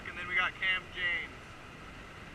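A young man shouts excitedly nearby.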